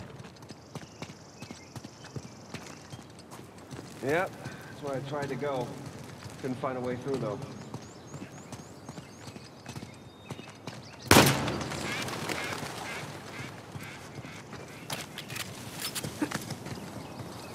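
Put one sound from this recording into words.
Footsteps run over gravel and rubble.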